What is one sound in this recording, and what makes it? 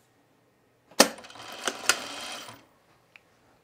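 A sewing machine runs briefly in a short burst of stitching.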